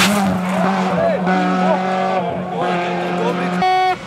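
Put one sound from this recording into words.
Gravel sprays and crunches under spinning tyres.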